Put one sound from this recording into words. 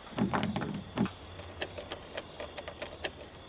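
A metal pick clicks and scrapes inside a lock.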